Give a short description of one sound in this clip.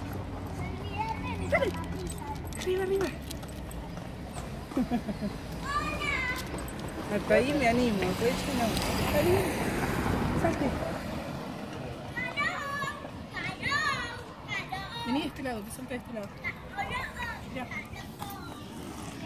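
A woman talks outdoors close by.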